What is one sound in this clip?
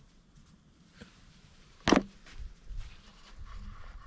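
Tent fabric rustles and flaps as a door is pushed open.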